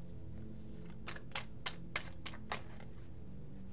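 A deck of playing cards is shuffled with quick flicks.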